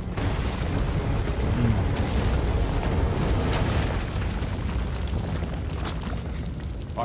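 Glass shatters and debris rumbles loudly.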